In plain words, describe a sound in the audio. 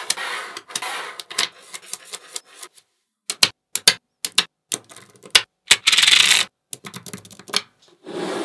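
Small metal magnetic balls click and snap together.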